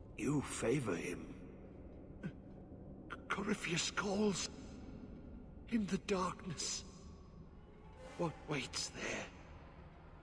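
A man speaks gravely and with feeling.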